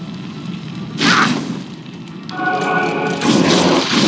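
A magic spell bursts with a loud whoosh.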